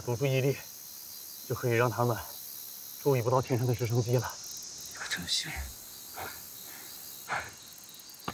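A man speaks firmly up close.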